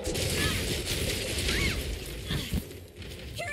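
Weapon strikes slash and clang against a monster.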